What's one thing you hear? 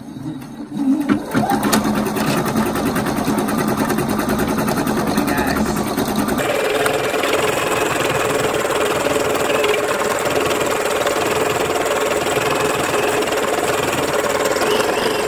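An embroidery sewing machine stitches with a rapid, steady clatter.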